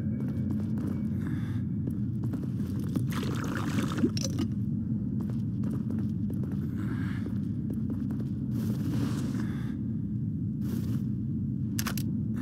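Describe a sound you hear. Footsteps scuff across a stone floor.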